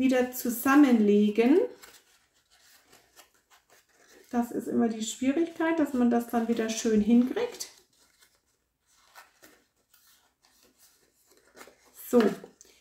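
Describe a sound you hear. Paper crinkles and rustles softly as hands fold it.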